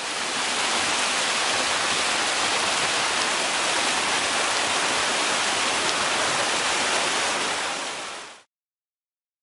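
White water rushes and roars loudly over rapids.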